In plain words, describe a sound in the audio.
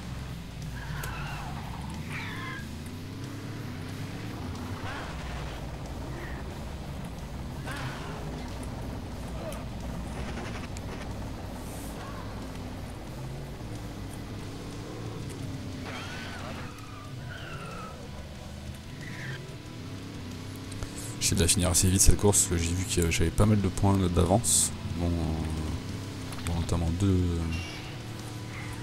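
A car engine roars steadily, rising and falling in pitch as it speeds up and slows down.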